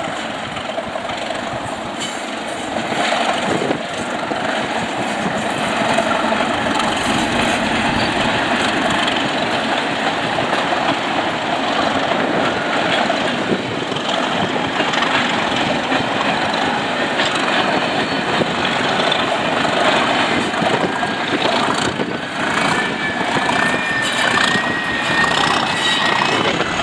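A diesel train engine roars nearby as a train passes.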